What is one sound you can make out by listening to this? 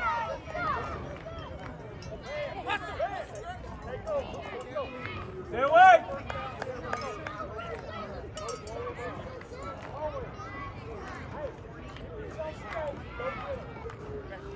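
A crowd of spectators chatters and calls out across an open field outdoors.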